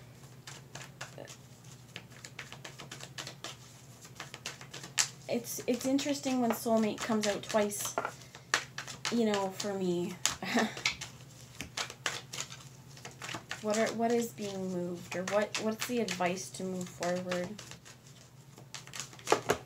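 Playing cards shuffle and riffle in hands.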